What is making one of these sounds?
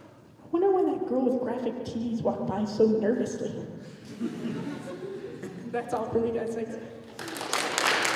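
A young woman sings into a microphone through a loudspeaker.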